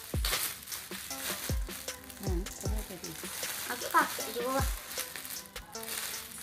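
Plastic wrapping crinkles and rustles under small hands.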